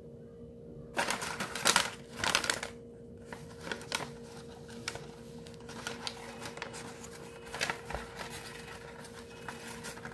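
A book slides and scrapes across a table.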